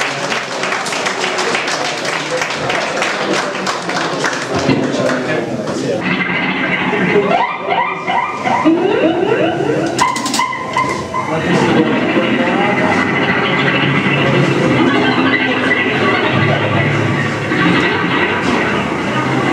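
A band plays loudly through amplifiers.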